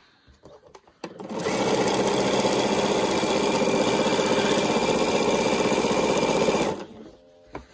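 A sewing machine runs steadily, its needle stitching fast.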